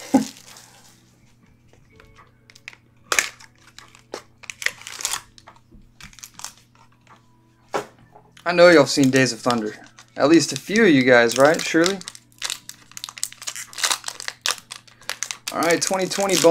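A plastic wrapper crinkles and rustles as hands handle it.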